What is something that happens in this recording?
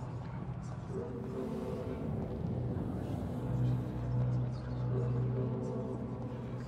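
Slow footsteps shuffle along a hard floor.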